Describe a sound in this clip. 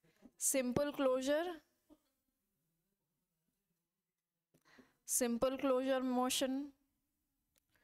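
A young woman speaks calmly and clearly through a close microphone, in short phrases with pauses.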